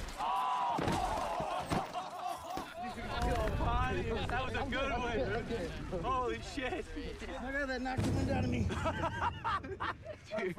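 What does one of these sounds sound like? Several men shout and laugh with excitement nearby.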